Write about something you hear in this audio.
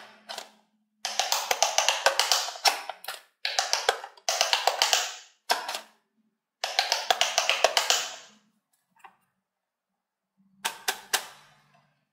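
Plastic buttons on a toy click as fingers press them.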